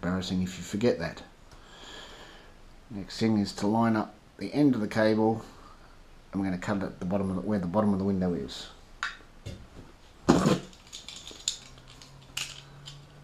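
Small plastic parts click and rattle between fingers, close by.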